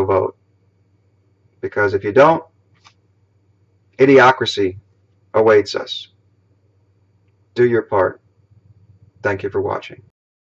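A middle-aged man speaks calmly in short phrases, close to the microphone.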